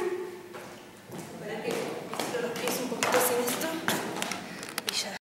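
High heels click on a wooden floor in an echoing room.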